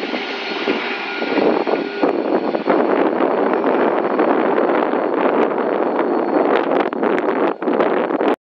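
A diesel locomotive rumbles loudly close by as a freight train passes.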